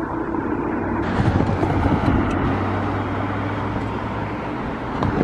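A train horn blows in the distance.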